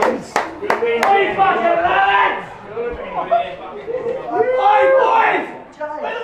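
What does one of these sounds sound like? Young men chant together in an echoing room.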